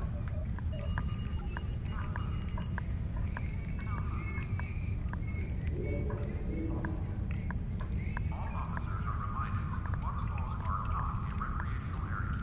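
Soft electronic beeps sound as menu options are chosen.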